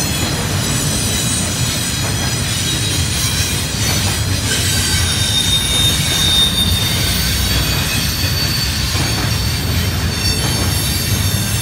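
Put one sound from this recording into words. A freight train rumbles past at a distance, its wheels clattering and squealing on the rails.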